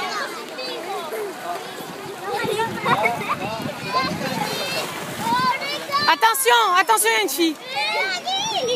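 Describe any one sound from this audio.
Young children shout and squeal excitedly close by.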